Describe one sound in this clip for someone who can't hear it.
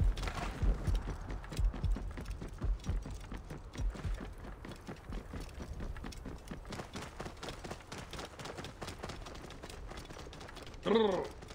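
A camel's hooves thud steadily on sandy ground.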